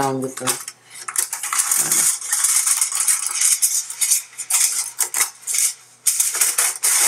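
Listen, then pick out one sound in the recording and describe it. Aluminium foil crinkles and rustles as it is handled.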